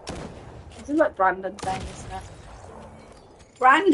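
A glassy shattering burst sounds.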